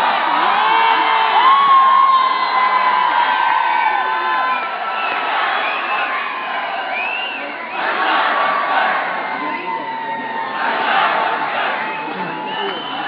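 A large crowd cheers and chants loudly outdoors, with swells of roaring.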